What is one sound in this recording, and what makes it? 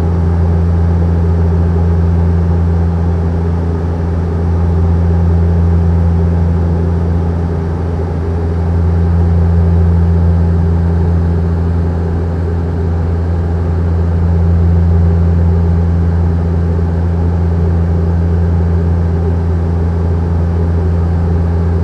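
A jet airliner's engines drone with a steady low roar in the cabin.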